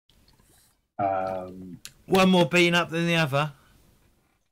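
A man speaks in a drawn-out, sing-song voice over an online call.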